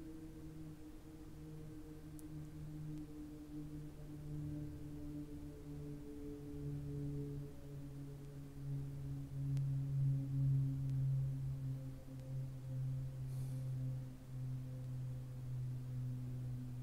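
A man hums a long, low, steady note close by.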